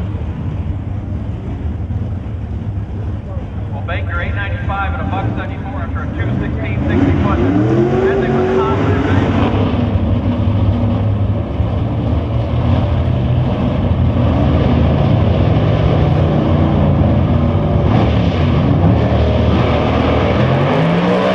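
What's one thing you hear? Race car engines idle and rumble loudly.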